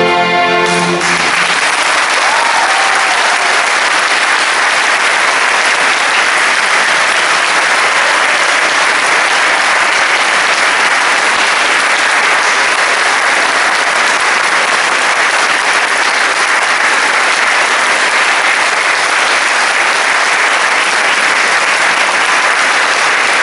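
An audience applauds steadily.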